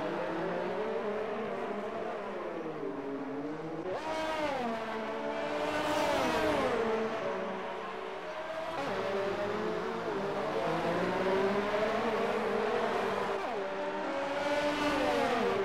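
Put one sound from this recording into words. Racing car engines scream and shift pitch as the cars speed past.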